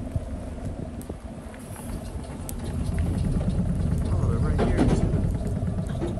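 A vehicle's tyres rattle over a metal cattle grid.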